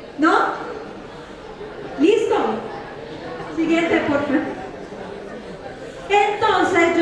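A woman speaks with animation through a loudspeaker in a large echoing hall.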